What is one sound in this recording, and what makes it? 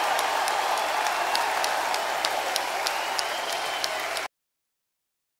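A large crowd cheers.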